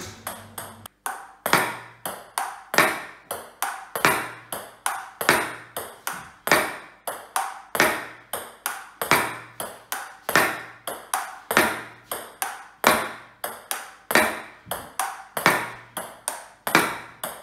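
A paddle strikes a ping-pong ball in a quick, steady rhythm.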